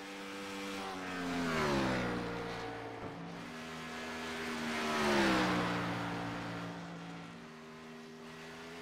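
A race car engine roars at high revs.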